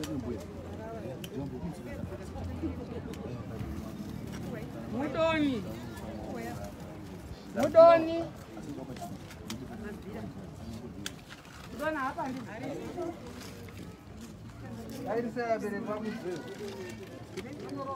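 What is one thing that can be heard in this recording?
Several people talk nearby outdoors.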